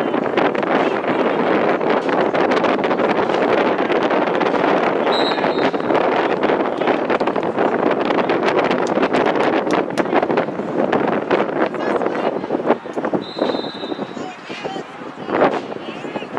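Lacrosse sticks clack against each other.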